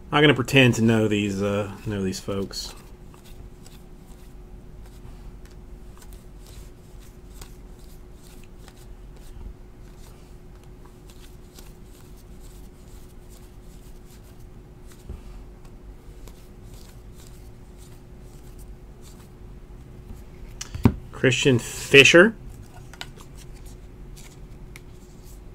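Trading cards slide and flick against each other as they are sorted by hand.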